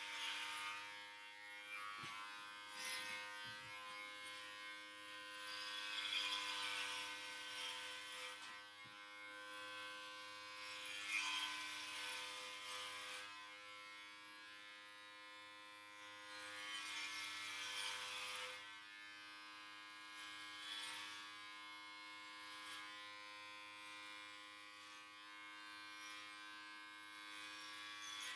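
Hair clippers rasp through short hair.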